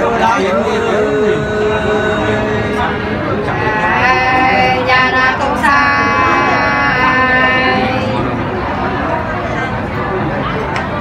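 Two women sing a slow, drawn-out song together, close by.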